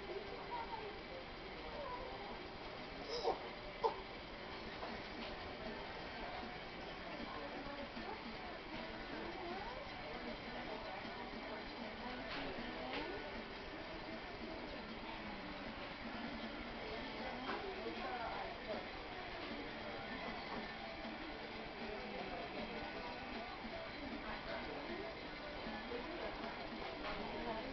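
A woman talks softly and warmly up close.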